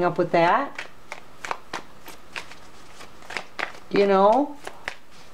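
Cards are shuffled by hand with quick soft flicks.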